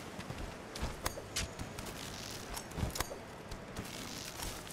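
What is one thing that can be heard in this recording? Hands scrabble and rustle while climbing a vine-covered wall.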